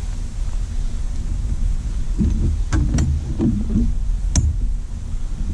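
A fishing reel clicks as it is wound.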